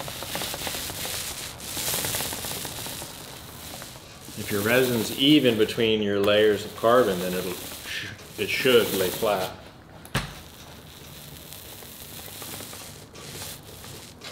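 A paint roller rolls wetly over a sheet with a soft sticky sound.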